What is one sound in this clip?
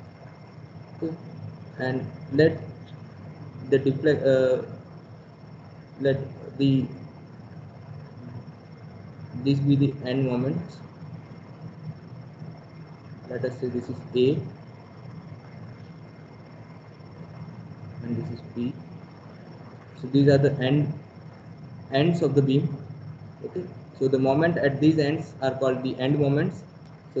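A man speaks calmly in short phrases over an online call, with pauses between them.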